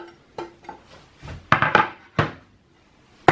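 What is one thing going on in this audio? A knife taps on a cutting board.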